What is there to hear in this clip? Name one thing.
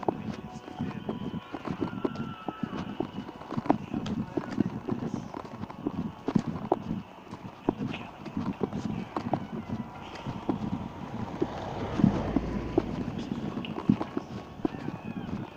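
Loose parts rattle and knock inside a moving vehicle.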